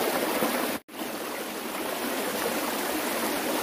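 Bare feet splash as a person steps out of shallow water.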